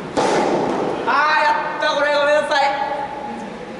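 A young man calls out loudly across the court.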